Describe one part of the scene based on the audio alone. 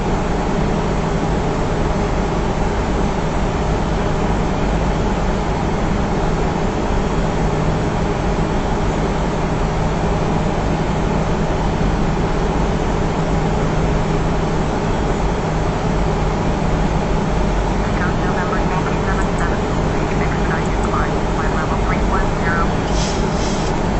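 Jet engines roar in a steady low drone.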